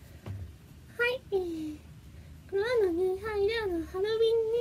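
A young woman speaks softly and playfully close by.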